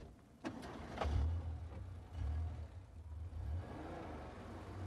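A car engine rumbles.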